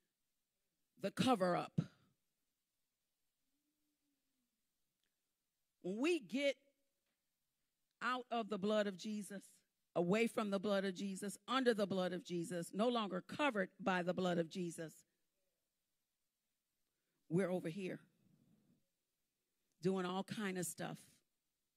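A woman speaks into a microphone in pauses, heard through a loudspeaker.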